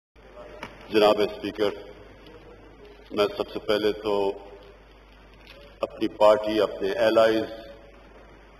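A middle-aged man speaks deliberately into a microphone in a large hall, with pauses between phrases.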